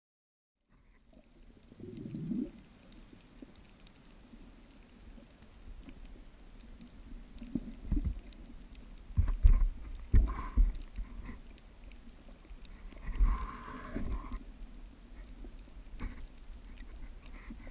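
Water swishes and gurgles in muffled bursts underwater.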